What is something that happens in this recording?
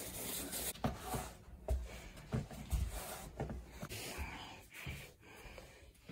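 Footsteps shuffle across a hard floor.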